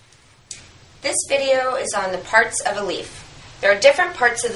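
A woman speaks calmly and clearly close by.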